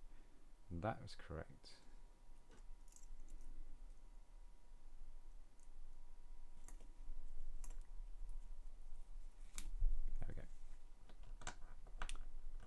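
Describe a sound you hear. Small plastic pieces click and snap together by hand.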